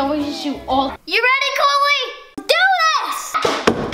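A young boy shouts excitedly.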